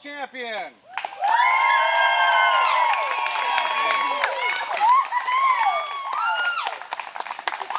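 A group of people cheers and whoops outdoors.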